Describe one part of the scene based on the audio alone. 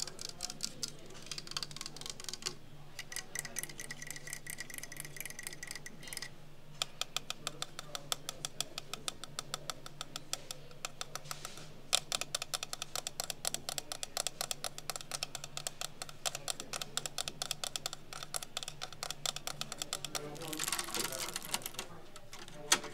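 A clock ticks rapidly and steadily up close.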